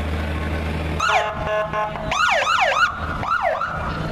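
A police siren wails and yelps close by.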